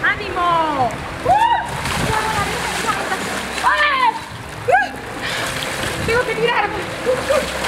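Feet splash and slosh through shallow water.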